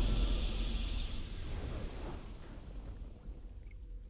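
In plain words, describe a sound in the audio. A triumphant game fanfare swells and slowly fades away.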